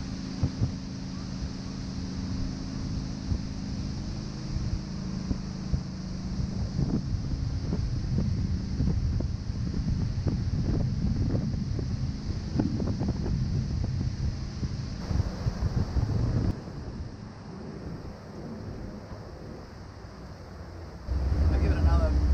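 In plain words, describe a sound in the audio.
A boat's motor hums steadily.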